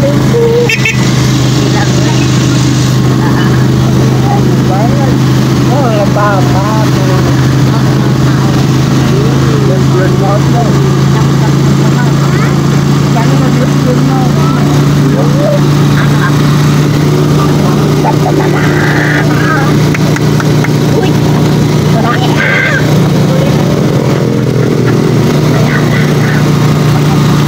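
An engine hums steadily and loudly close by.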